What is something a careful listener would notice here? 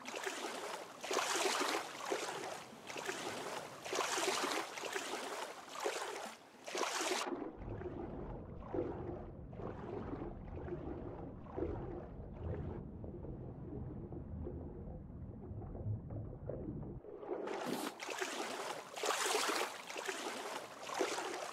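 Water splashes in rhythmic strokes as someone swims at the surface.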